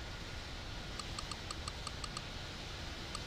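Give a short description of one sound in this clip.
Quick interface clicks tick in a rapid row.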